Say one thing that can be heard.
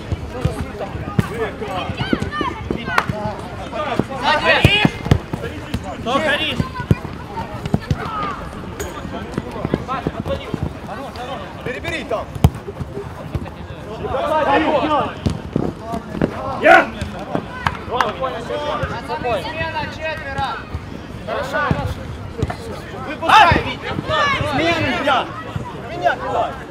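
Young men shout and call out to each other across an open field.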